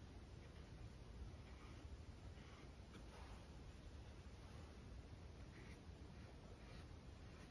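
A paintbrush dabs and strokes softly on canvas.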